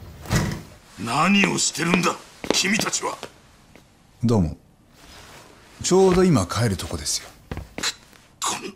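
A middle-aged man speaks sternly.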